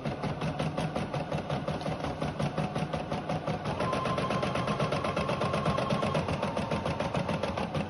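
An embroidery machine stitches with a fast, steady rattling hum.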